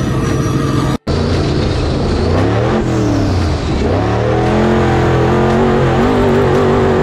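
An off-road buggy's engine roars and revs up and down.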